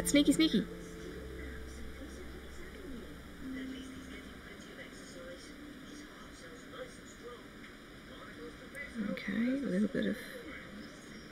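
A middle-aged woman speaks calmly into a microphone.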